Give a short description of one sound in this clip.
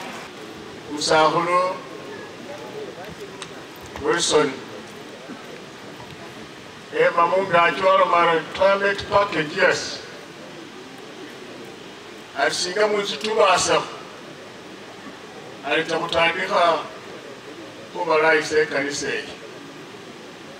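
An elderly man speaks slowly through a microphone, in short phrases with long pauses.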